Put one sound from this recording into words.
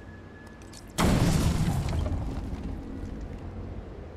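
An explosive charge detonates with a heavy boom.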